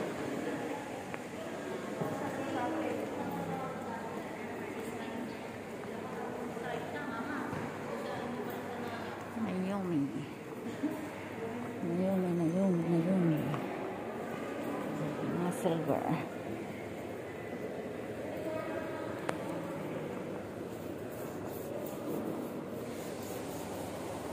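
Many voices murmur in a large echoing hall.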